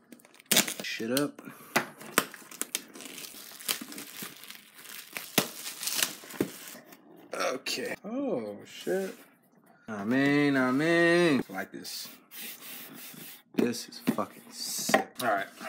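Hands rustle and tap a cardboard box.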